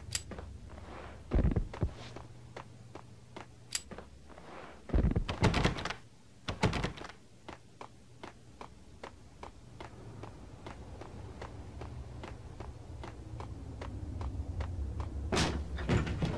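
Footsteps tap quickly on a hard tiled floor, echoing slightly.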